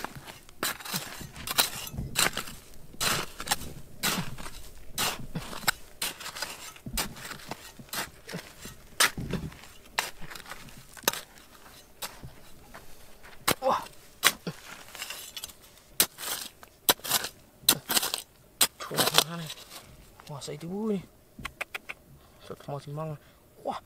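A small metal trowel scrapes and digs into dry, stony soil.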